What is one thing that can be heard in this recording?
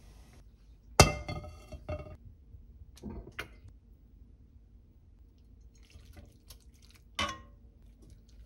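Food drops into an empty pan with a knock.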